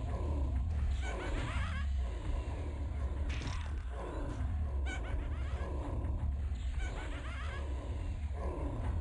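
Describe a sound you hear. Magic spells crackle and zap in a fight.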